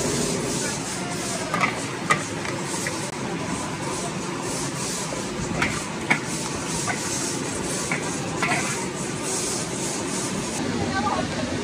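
Meat sizzles in a hot wok.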